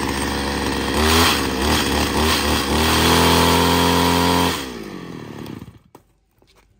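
A chainsaw engine revs up loudly, then cuts out.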